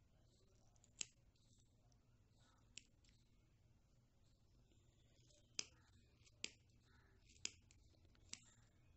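Scissors snip sharply through yarn, close by.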